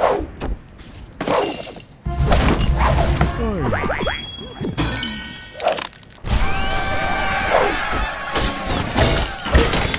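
Bright sparkling chimes ring out in bursts.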